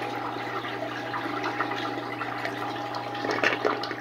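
A toilet flushes, water swirling and gurgling down the drain.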